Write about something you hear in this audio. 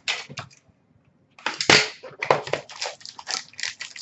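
Plastic wrapping crinkles as it is handled.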